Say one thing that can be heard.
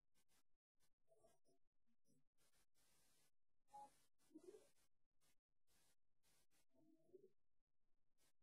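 A woman speaks softly and calmly over an online call.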